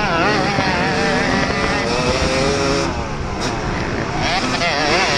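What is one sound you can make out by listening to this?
Other dirt bike engines whine further ahead.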